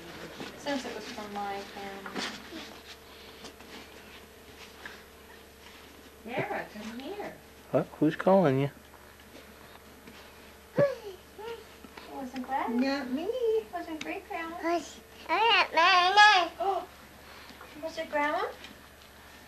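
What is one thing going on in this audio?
A woman talks nearby in a playful, animated voice.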